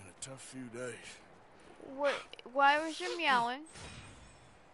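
A man speaks calmly and gruffly, close by.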